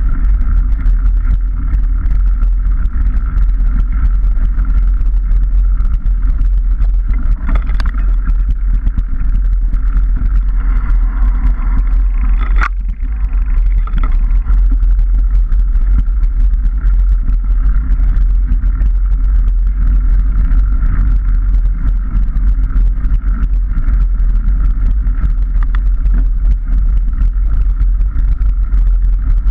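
A motorbike engine hums steadily at close range.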